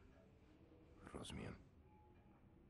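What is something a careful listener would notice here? A younger man answers quietly and briefly.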